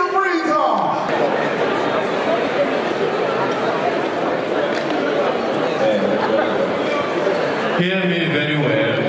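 A young man speaks with animation through a microphone and loudspeakers.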